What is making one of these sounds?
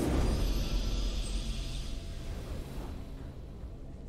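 A triumphant victory fanfare rings out and fades away.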